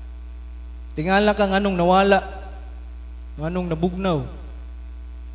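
A young man speaks into a microphone over loudspeakers in an echoing room.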